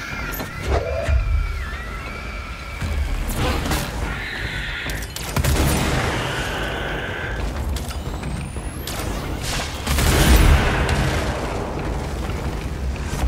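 Debris rumbles and crashes around.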